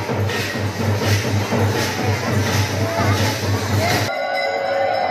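A large crowd cheers and chants loudly close by.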